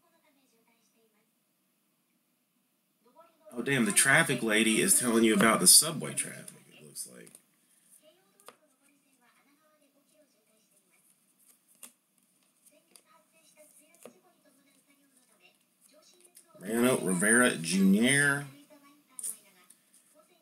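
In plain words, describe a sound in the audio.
Trading cards softly rustle and slide against each other as they are shuffled by hand.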